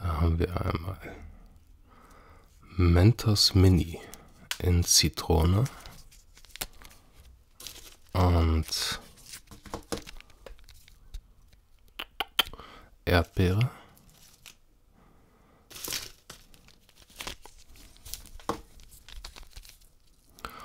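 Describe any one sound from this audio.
Plastic candy wrappers crinkle as they are handled up close.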